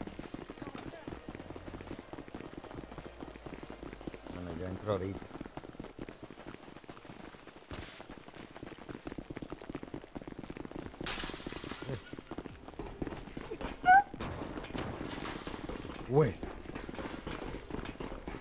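Quick footsteps run on hard ground.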